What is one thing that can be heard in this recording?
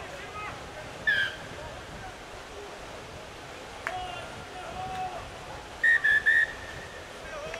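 A referee's whistle blows sharply outdoors.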